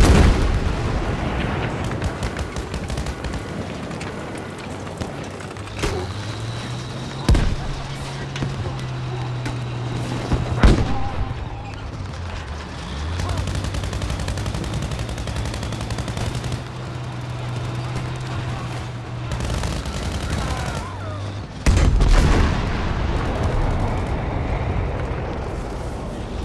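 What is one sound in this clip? A tank engine rumbles deeply.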